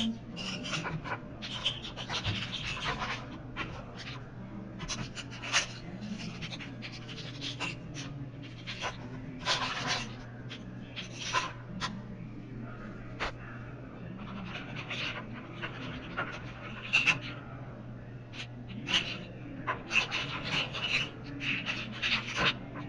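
Plastic sheets slide and rustle against each other.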